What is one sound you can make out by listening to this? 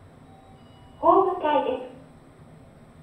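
An elevator chime rings.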